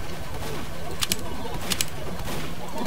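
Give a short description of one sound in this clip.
A short electronic click sounds as a menu button is pressed.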